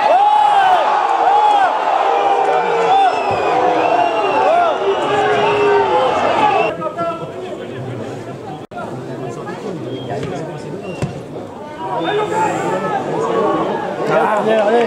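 Footballers shout to each other across an open field.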